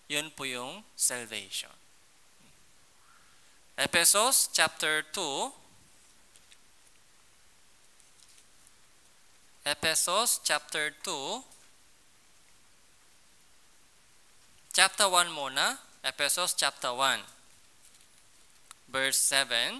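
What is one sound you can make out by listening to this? A man speaks calmly into a headset microphone, in short phrases with pauses.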